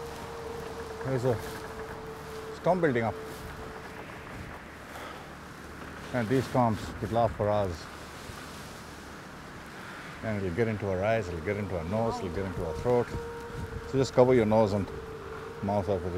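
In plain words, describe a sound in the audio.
A man speaks loudly and with animation over the wind.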